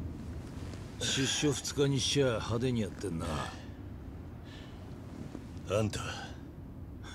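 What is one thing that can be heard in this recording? A man speaks gruffly, close by.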